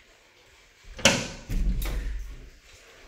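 A door clicks and swings open.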